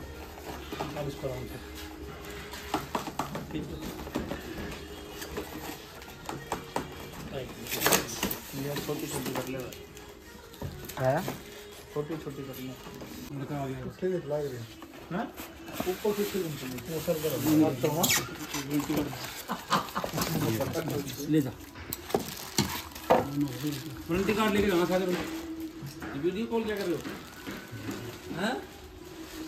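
Cardboard and plastic packaging rustles and crinkles.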